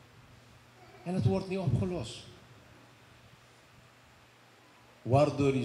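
A middle-aged man speaks calmly into a microphone, heard through a loudspeaker in a room.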